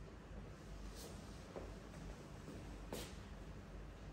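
A young girl's footsteps tap across the floor.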